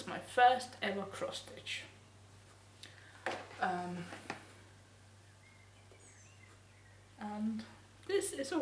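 A young woman speaks close by, calmly and with pauses.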